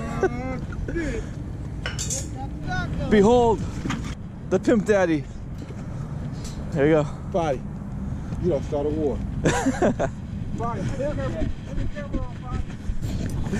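Adult men talk casually outdoors, close by.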